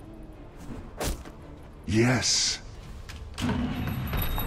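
Magic spells whoosh and crackle in short bursts.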